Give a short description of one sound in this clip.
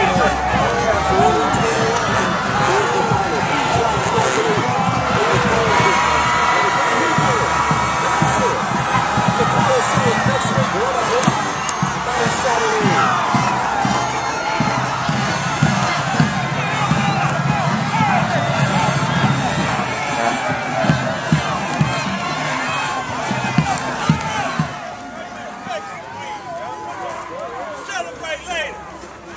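A crowd of teenage boys and adults cheers and shouts outdoors.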